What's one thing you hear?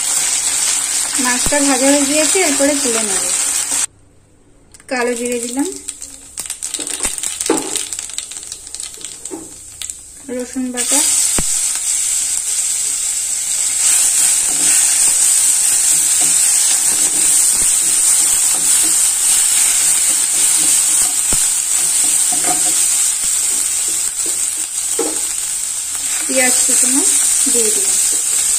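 Hot oil sizzles and crackles in a frying pan.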